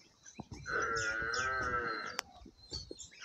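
A buffalo lets out a loud, wavering call.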